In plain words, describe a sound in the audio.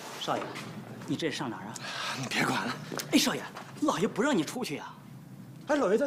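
An older man speaks urgently, close by.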